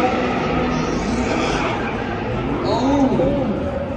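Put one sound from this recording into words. A car engine roars in the distance.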